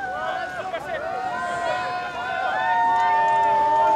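A crowd of spectators chatters and calls out in the distance, outdoors.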